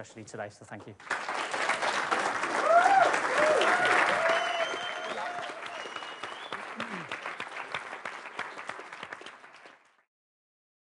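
A large audience claps loudly.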